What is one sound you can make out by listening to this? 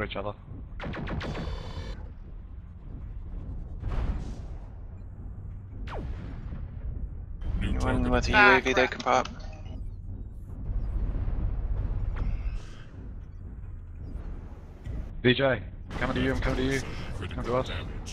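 A laser weapon fires with a buzzing hum.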